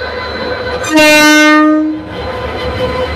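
A diesel locomotive's air horn sounds once.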